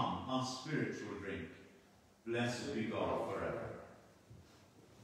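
A middle-aged man speaks calmly nearby in an echoing room.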